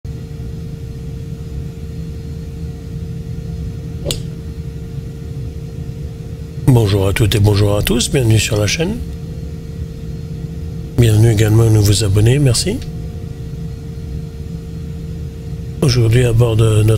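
An aircraft engine hums steadily at idle.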